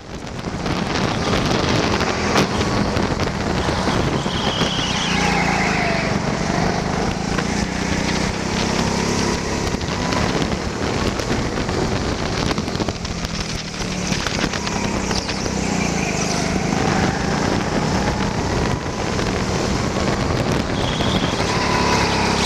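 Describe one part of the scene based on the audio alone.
A go-kart engine buzzes loudly and rises and falls in pitch.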